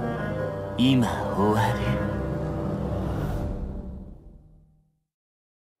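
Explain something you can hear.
A young man speaks slowly and menacingly.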